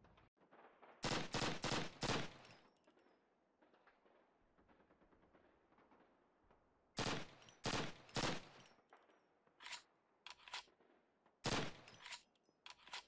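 Rifle shots crack loudly in quick bursts.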